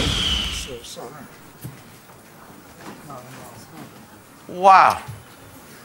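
An elderly man speaks with emotion, close to a microphone.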